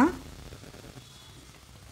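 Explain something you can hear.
Semolina pours into boiling water in a pan.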